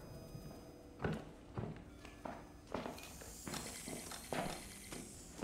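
Heavy footsteps thud on a wooden floor nearby.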